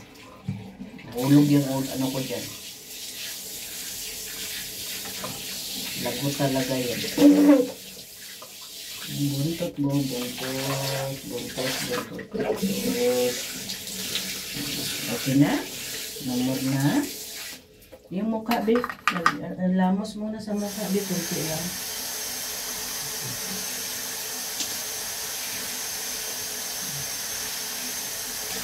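Water sprays from a shower hose with a steady hiss.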